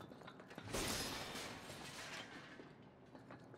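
A wooden crate smashes apart with a crash.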